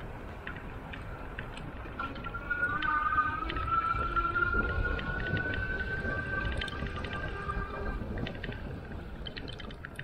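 Tyres roll steadily along a paved path.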